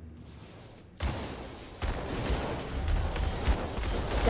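Magic blasts crackle and boom loudly.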